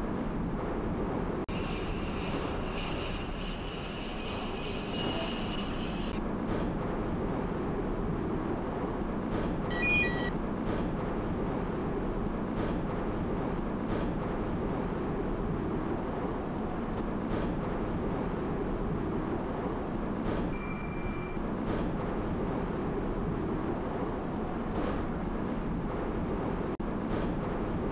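An electric metro train runs along the rails.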